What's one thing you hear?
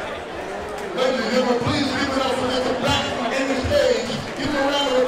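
A man nearby speaks loudly and with excitement.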